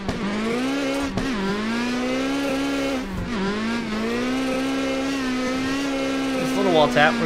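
A car engine roars steadily at high revs, dipping briefly as the driver shifts.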